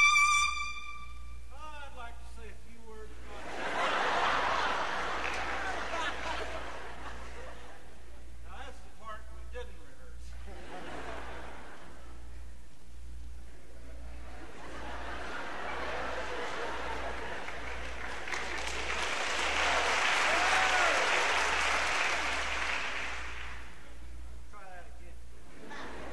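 A trumpet plays a melody.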